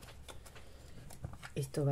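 A paper punch snaps shut with a click.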